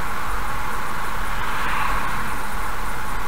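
A heavy truck rushes past in the opposite direction.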